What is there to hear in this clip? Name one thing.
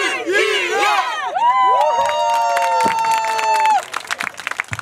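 A group of women and men scream and cheer excitedly nearby.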